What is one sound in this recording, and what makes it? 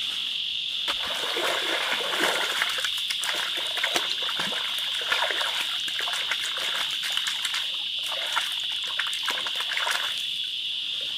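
Hands splash and scoop in shallow water.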